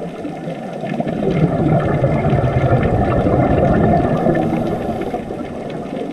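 Air bubbles from a diver's breathing gurgle and rumble underwater.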